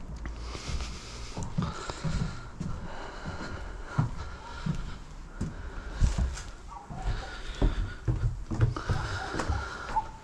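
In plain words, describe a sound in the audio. Footsteps thud and creak on old wooden boards and stairs.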